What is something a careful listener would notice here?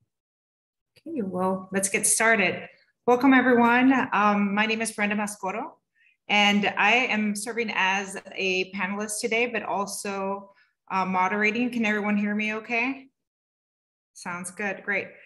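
A woman speaks calmly and clearly over an online call.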